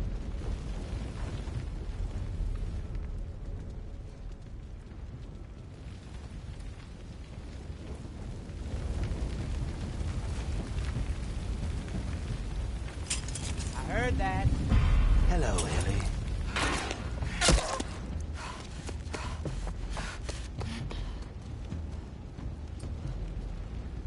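Fire crackles and roars nearby.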